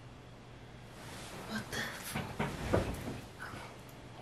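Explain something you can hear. Bedding rustles as a young woman sits up in bed.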